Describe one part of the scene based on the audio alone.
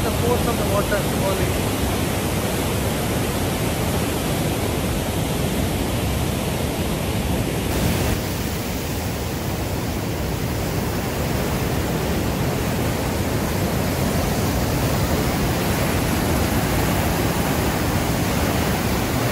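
Rushing white water roars loudly and steadily, heard outdoors.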